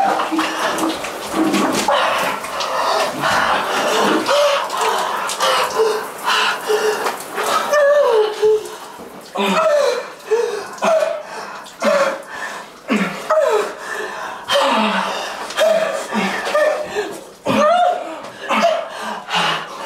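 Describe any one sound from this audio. Water from a shower sprays and splashes.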